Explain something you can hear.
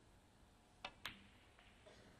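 A snooker cue ball clicks against a red ball.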